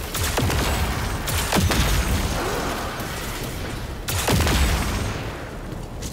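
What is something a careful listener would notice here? Loud explosions burst and rumble.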